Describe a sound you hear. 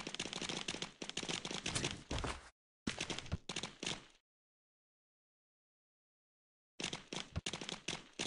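A goat's hooves trot over grass.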